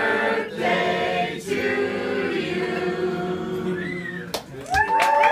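A small group of people sings together nearby.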